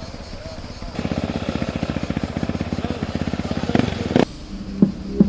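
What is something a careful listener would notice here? A motorcycle engine runs and revs loudly.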